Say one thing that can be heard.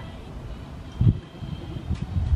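Skis land on a plastic slope with a heavy thump.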